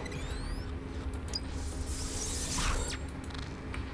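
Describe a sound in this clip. A short electronic chime sounds as a lock opens.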